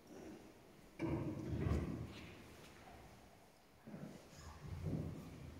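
A man speaks slowly and calmly in a large echoing hall.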